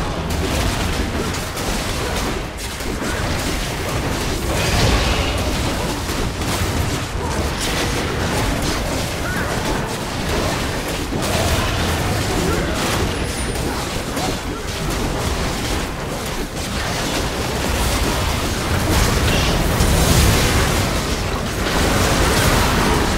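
Game spell effects whoosh and crackle in a busy battle.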